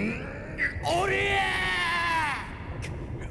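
A man screams in terror.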